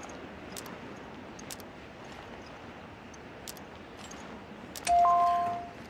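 A puzzle clicks as its pieces are moved.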